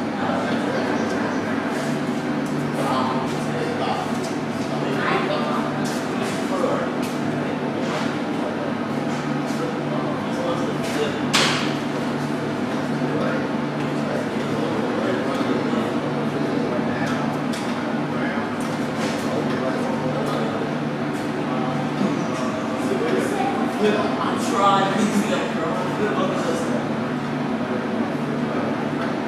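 Children talk quietly nearby.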